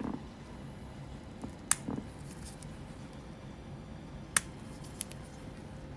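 Rubber gloves rub and squeak against skin.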